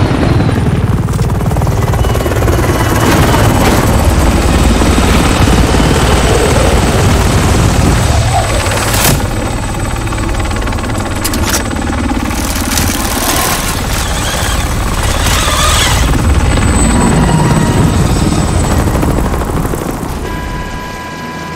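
A helicopter's rotor thumps and roars loudly overhead.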